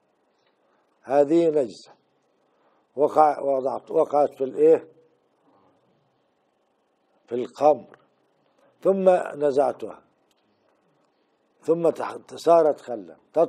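An elderly man speaks calmly in short phrases with pauses, close to a microphone.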